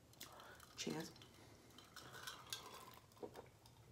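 A young woman sips a drink.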